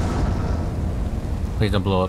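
Small jet thrusters hiss and roar.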